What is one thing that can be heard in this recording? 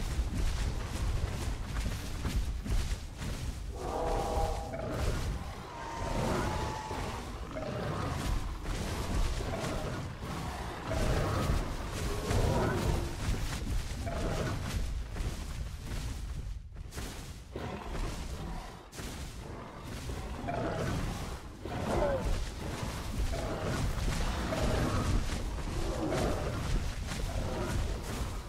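Heavy footsteps thud steadily as a large creature walks.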